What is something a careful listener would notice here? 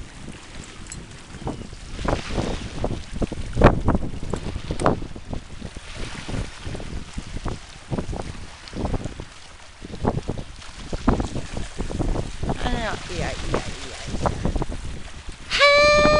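Small waves lap against a shore.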